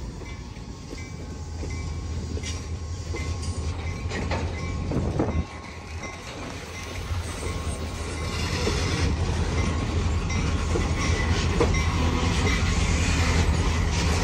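Diesel locomotives rumble and drone loudly close by.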